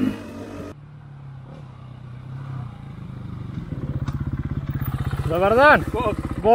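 Another motorbike approaches from a distance, its engine growing louder and revving.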